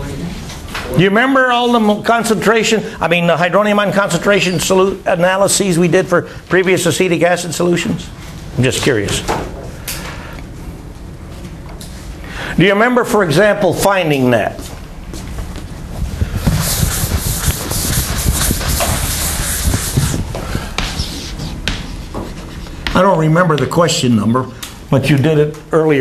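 An elderly man lectures calmly.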